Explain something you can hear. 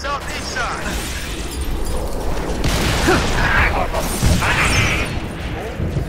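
Sci-fi gunfire blasts in quick bursts.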